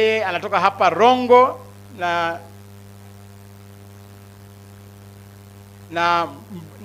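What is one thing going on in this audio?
A man speaks with animation into a microphone, heard through loudspeakers, drawing out some words.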